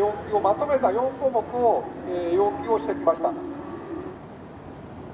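An elderly man speaks loudly through a microphone outdoors.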